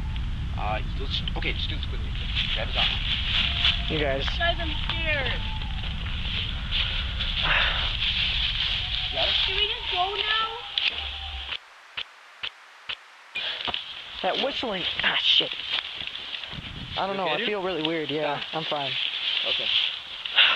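Dry leaves rustle and crunch under scuffling feet.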